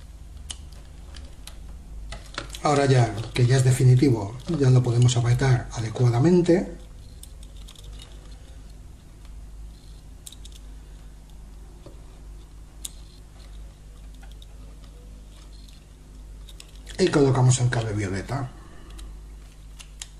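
Small plastic parts click and tap as wires are fitted into a plug.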